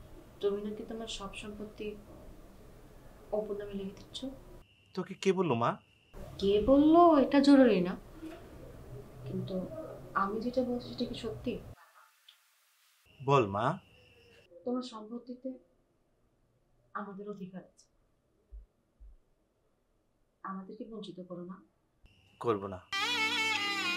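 A young woman speaks softly and tearfully on a phone.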